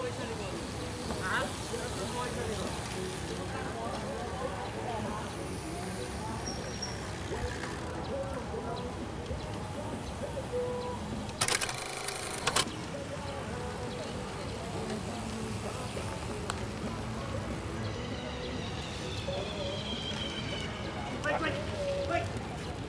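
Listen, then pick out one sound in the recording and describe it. Freewheels tick as bicycles coast by.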